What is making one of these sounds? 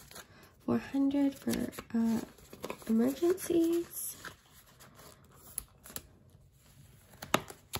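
A plastic sleeve crinkles as it is opened and flipped.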